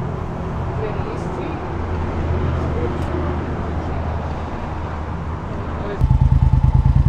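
A motorcycle engine idles close by.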